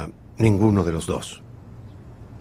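An older man speaks briefly and calmly, close by.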